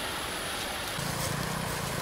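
Leafy stems rustle as hands sort them.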